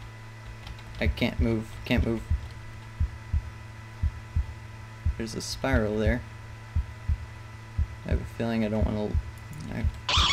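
A young man speaks close into a microphone, with animation.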